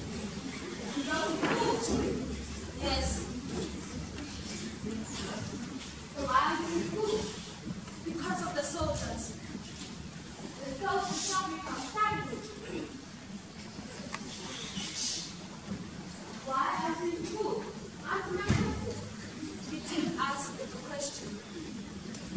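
Young performers speak lines in turn in an echoing hall.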